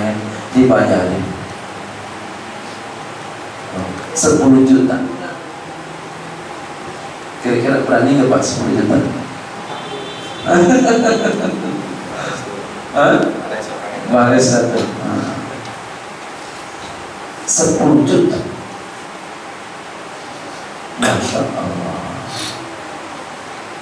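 A man speaks with animation into a headset microphone, in short bursts with pauses.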